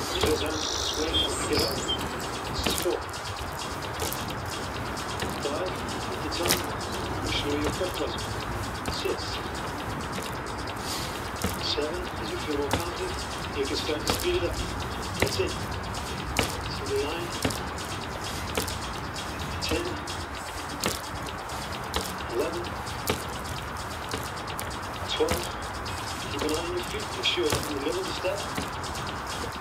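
Bare feet repeatedly step onto a cardboard box with dull thumps and creaks.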